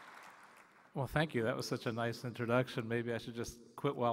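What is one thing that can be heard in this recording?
A man speaks into a microphone, heard over loudspeakers in a large hall.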